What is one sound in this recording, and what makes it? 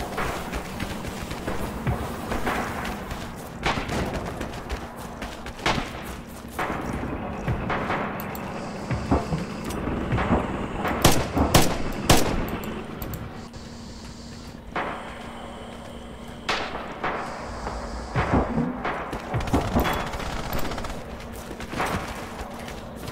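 Footsteps rustle through grass and over ground.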